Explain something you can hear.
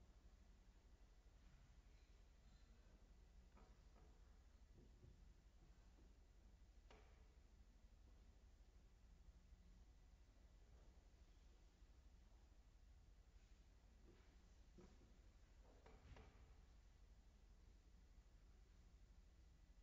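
A piano plays softly and sparsely in a large echoing hall.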